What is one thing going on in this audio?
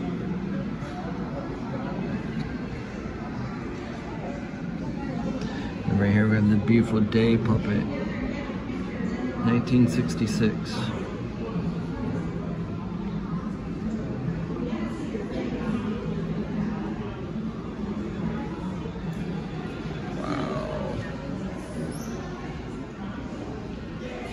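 Visitors murmur quietly in the background of an indoor room.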